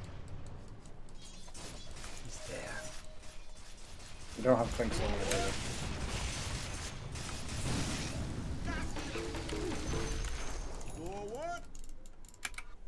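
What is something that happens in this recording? Game spell and combat effects crackle and whoosh.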